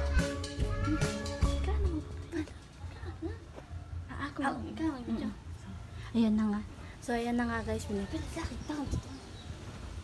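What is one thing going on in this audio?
A woman talks with animation close by.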